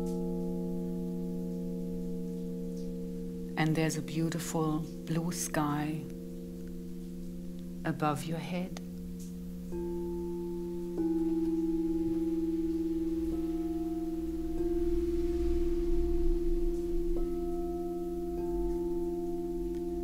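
Crystal singing bowls ring with steady, layered humming tones.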